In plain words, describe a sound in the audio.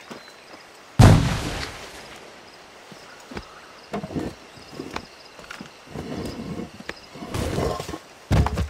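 Grass rustles as a man scrambles up a slope.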